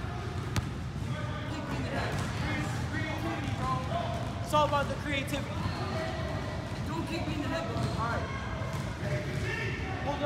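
A teenage boy talks with animation nearby in an echoing hall.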